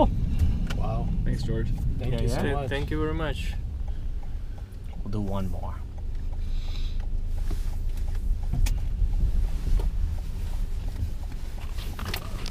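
A car engine hums steadily with road rumble from inside the car.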